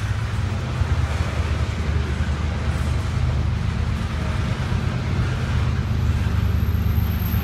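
A locomotive approaches in the distance, with its engine droning low.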